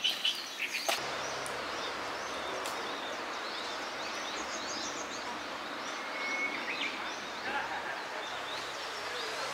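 Leaves rustle in the wind.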